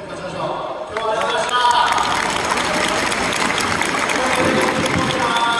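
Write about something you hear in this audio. Fans clap their hands in rhythm.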